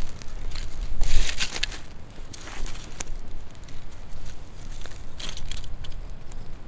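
Dry sticks knock and clatter as they are laid on a fire.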